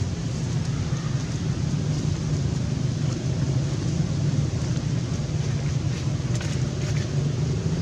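Dry leaves rustle under a monkey's steps.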